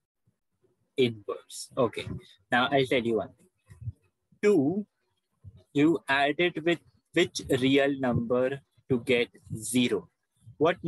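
A man explains calmly, heard through an online call.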